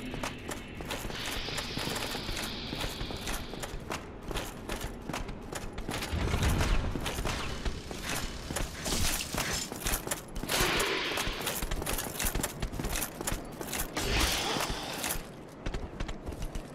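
Armoured footsteps clank quickly on stone.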